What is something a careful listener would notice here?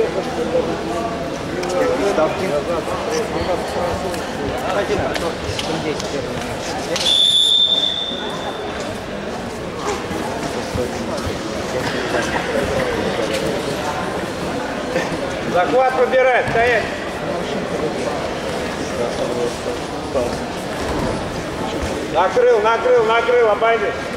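Voices murmur and chatter in a large echoing hall.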